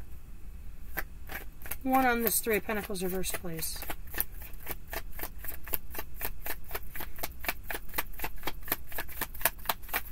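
Cards are shuffled with quick, crisp flicks.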